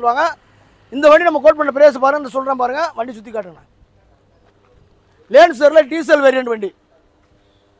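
A man speaks with animation close by.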